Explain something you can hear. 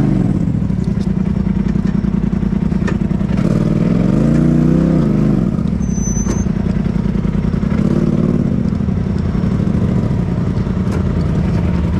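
Small knocks and rattles come from the buggy's frame.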